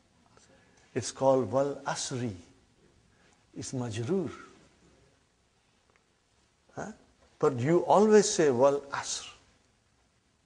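An older man speaks calmly and warmly through a close microphone, in short phrases with pauses.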